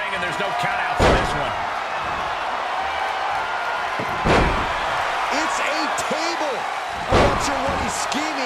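Heavy thuds of bodies slamming hit hard a few times.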